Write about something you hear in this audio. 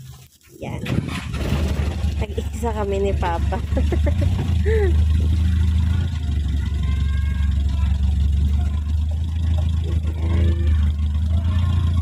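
A truck engine starts and rumbles steadily.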